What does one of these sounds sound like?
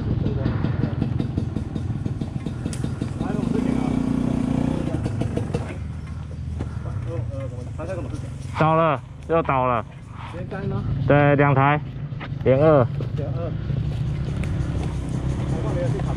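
A dirt bike engine idles with a low rumble close by.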